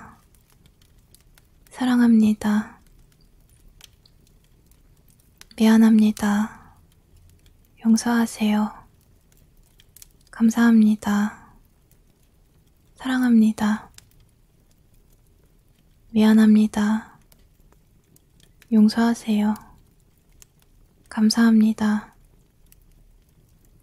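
A wood fire crackles and pops steadily.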